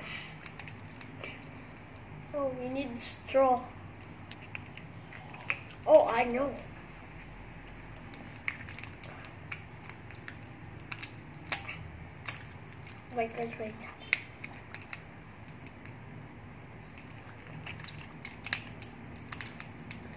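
A plastic candy wrapper crinkles as it is torn open.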